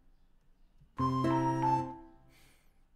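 A synthesizer plays a short run of notes.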